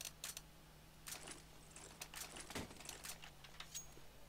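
Short clicks sound as menu items are picked.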